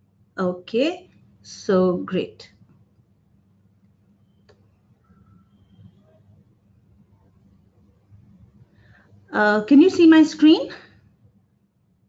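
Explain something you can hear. A woman speaks calmly over an online call, in short bursts with long pauses.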